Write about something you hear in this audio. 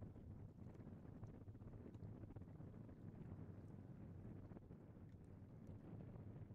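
Shallow water ripples and laps over stones.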